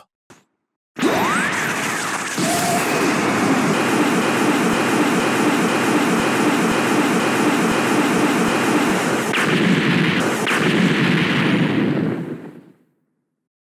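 A powerful blast roars and rumbles steadily.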